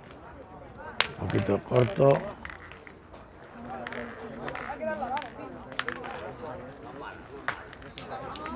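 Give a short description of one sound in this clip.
Metal balls clack against each other.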